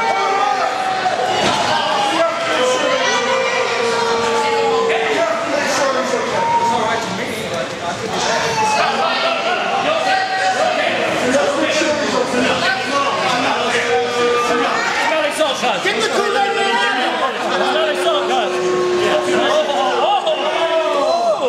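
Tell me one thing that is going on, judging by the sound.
A crowd of men and women shout and cheer loudly in a large echoing hall.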